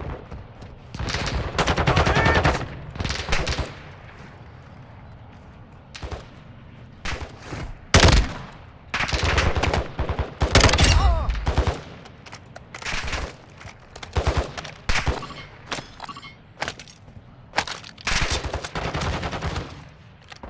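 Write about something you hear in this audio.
Automatic gunfire rattles in loud, short bursts.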